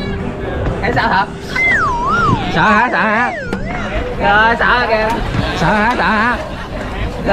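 A teenage boy laughs excitedly close by.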